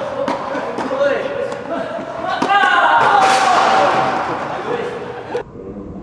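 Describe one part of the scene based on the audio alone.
Young men shout and call out loudly in an echoing hall.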